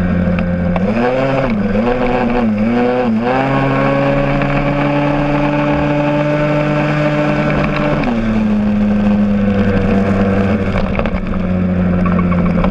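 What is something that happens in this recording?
Wind rushes past on a moving ride.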